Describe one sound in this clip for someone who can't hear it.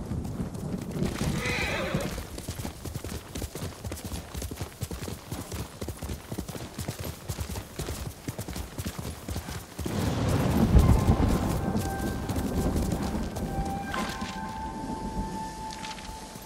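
Wind blows outdoors.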